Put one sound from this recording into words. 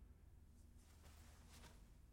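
Clothing rustles softly as a person moves about and bends down.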